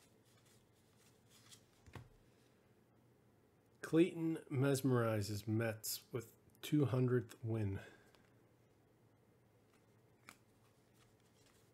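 Cardboard cards rustle and slide softly between hands.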